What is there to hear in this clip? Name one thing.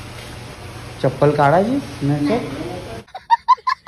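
A small child cries out loudly.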